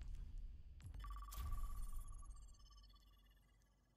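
A short game menu chime rings out and slowly fades.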